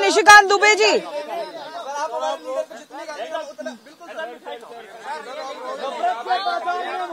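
A crowd of men chatter and call out around a microphone.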